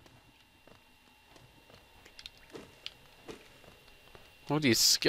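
Small light footsteps patter on stone.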